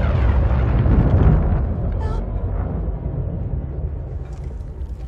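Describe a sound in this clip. A deep mechanical roar rumbles loudly and slowly fades.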